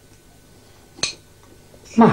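A spoon clinks against a dish.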